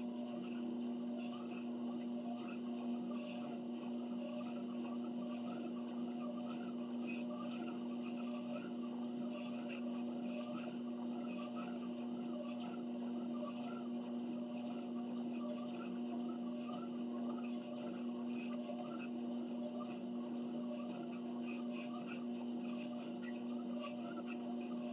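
Footsteps thud in a steady rhythm on a treadmill belt.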